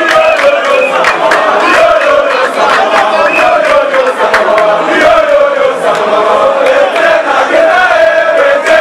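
A large crowd of men chants and sings loudly outdoors.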